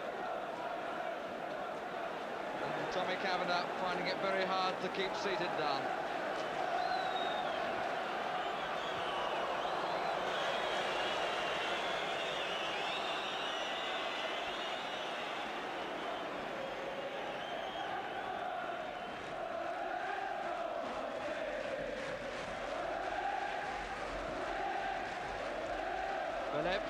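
A large crowd roars and cheers outdoors.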